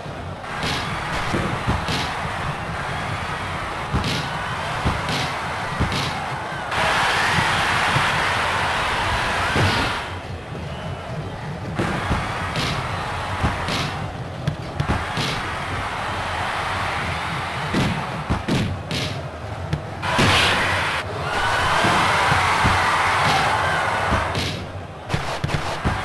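A stadium crowd roars steadily, swelling loudly at times.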